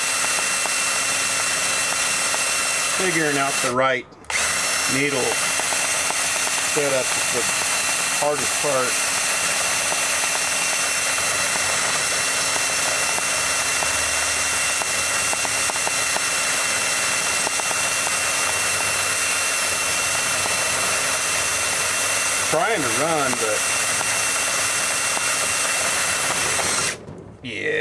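A cordless drill whirs steadily at high speed.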